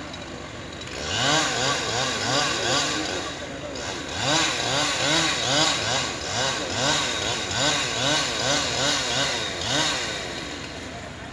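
A chainsaw revs and cuts into a tree trunk.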